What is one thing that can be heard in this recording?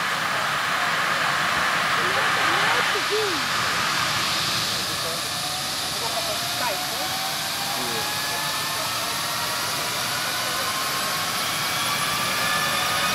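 A helicopter engine roars steadily with a whine that slowly rises in pitch.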